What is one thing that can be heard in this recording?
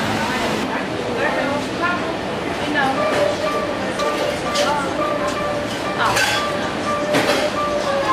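Young women chat nearby.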